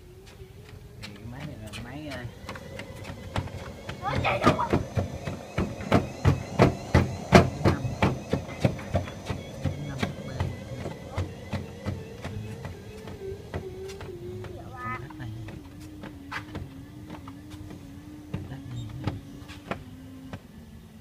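Footsteps thump rhythmically on a moving treadmill belt.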